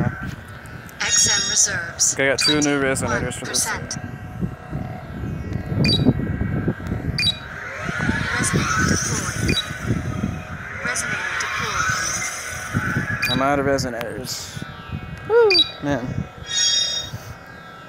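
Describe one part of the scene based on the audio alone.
Electronic game chimes and effects sound now and then.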